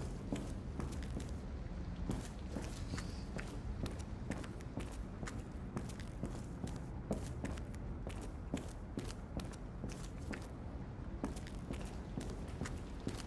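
Footsteps thud and creak on old wooden floorboards.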